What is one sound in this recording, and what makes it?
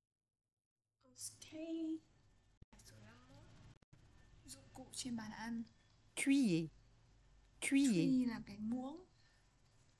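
A young woman speaks close to a microphone, reading out words slowly.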